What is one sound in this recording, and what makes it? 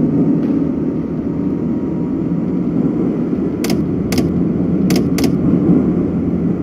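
A train rumbles steadily as it rolls slowly along the track.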